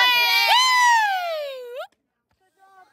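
A young woman shouts a long, loud call close by, her voice sliding down in pitch.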